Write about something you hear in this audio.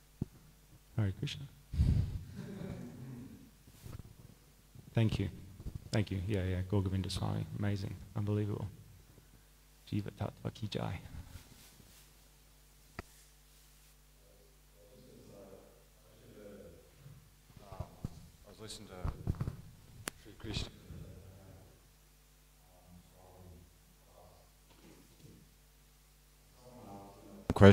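A man talks calmly into a microphone, with pauses.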